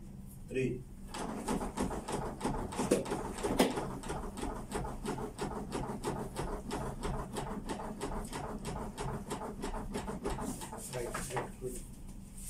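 A training dummy clicks rapidly and steadily under chest compressions.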